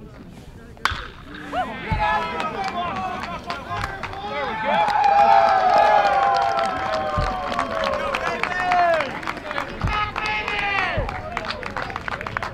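A crowd of spectators cheers and shouts excitedly.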